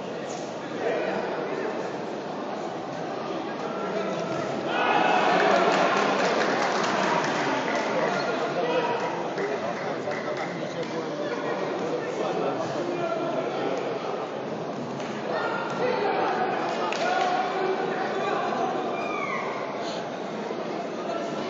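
A crowd cheers and shouts throughout, swelling loudly at times.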